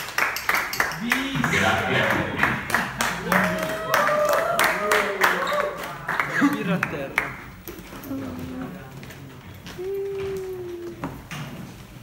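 Young men and women sing together nearby.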